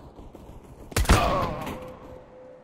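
A gunshot cracks close by and rings out.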